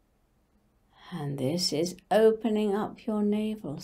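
An elderly woman speaks calmly and softly, close to a microphone.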